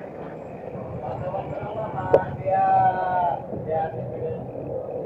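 A small motorcycle passes close by.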